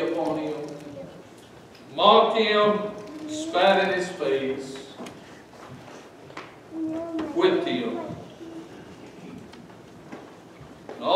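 A man preaches forcefully into a microphone in an echoing room, with long pauses.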